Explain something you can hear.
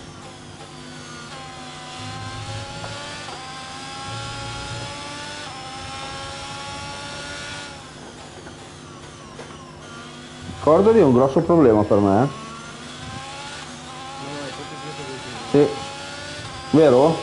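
A racing car engine whines and rises in pitch through the gears.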